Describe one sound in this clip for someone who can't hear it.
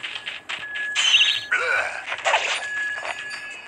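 A blade slashes through the air with a sharp swish.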